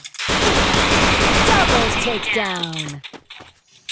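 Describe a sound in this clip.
A gun fires in a rapid burst.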